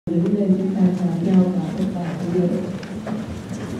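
A large crowd sings together in a large echoing hall.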